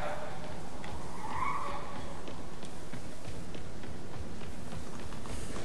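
Quick footsteps run on pavement.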